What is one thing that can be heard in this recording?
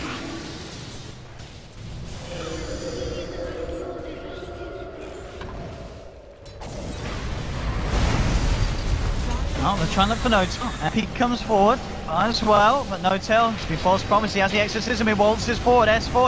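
Magical blasts and weapon clashes crackle and whoosh in a busy battle.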